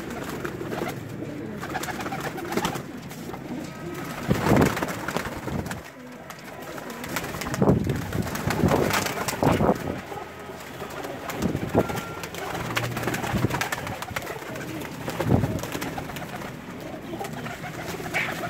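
Pigeons coo softly throughout.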